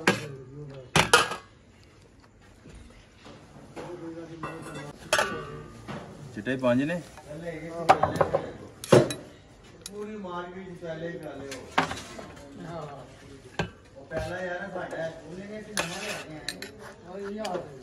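A knife taps and scrapes on a metal plate.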